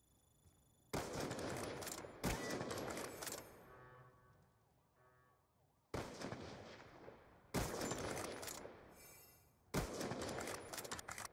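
A rifle fires loud, booming shots that ring out and fade.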